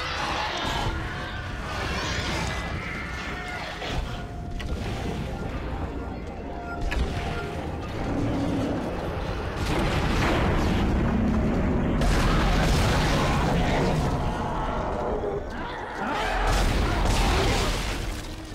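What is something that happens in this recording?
Energy guns fire in bursts.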